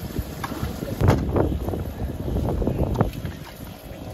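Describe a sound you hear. A fish flaps and thumps against a boat deck.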